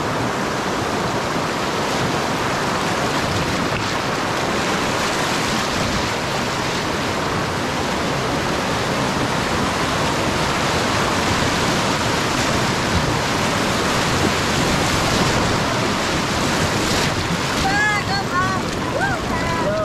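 Rushing river water roars loudly over rapids.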